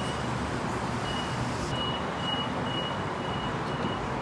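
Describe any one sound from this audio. Train doors slide shut.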